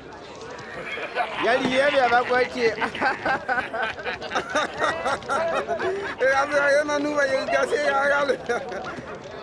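A man laughs loudly and mockingly close by.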